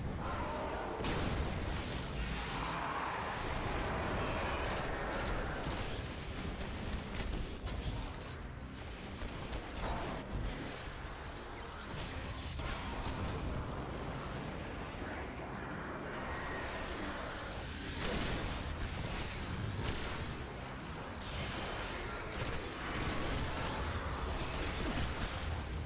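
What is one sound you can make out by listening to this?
Gunshots fire in rapid bursts in a video game.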